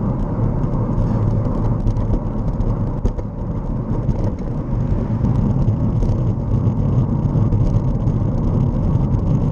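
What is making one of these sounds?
Wind rumbles steadily against a moving vehicle.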